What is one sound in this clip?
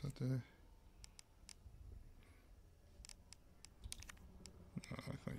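Short electronic menu clicks tick several times.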